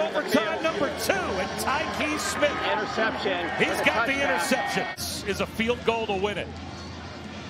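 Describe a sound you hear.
Men shout and cheer excitedly close by.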